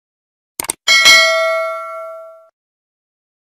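A small bell rings and fades.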